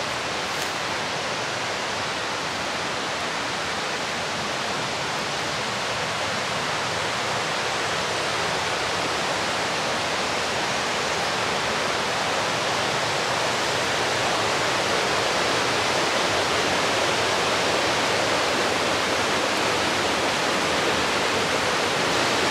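A stream rushes over rocks, growing louder as it nears.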